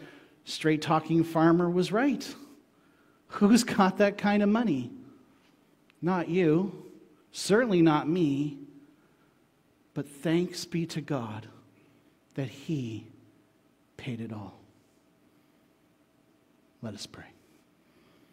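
A man speaks calmly into a microphone, pausing between phrases.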